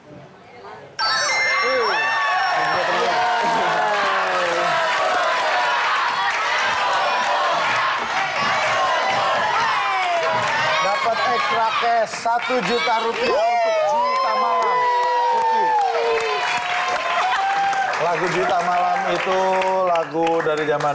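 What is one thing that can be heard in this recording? A group of people cheers and applauds loudly.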